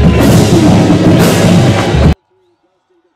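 A large outdoor crowd cheers loudly.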